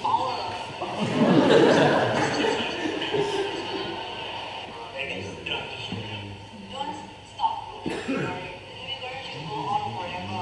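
A woman speaks through loudspeakers in a large echoing hall.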